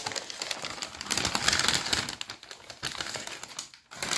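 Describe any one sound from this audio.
Paper rustles as a slice of pizza is lifted onto a plate.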